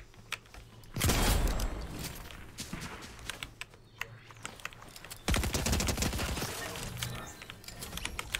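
Game gunshots and impacts crack in quick bursts.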